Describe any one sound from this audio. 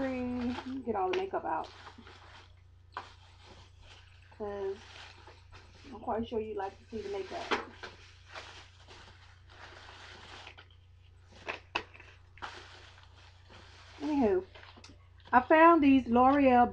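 A woman talks close by, in bursts.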